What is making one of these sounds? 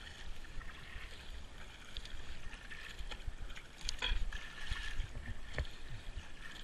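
A paddle dips and splashes in calm water.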